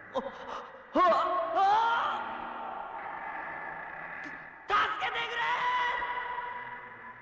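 A young man cries out in fear, calling for help.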